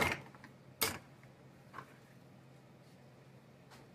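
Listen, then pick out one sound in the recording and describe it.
Hands rub and wipe food scraps.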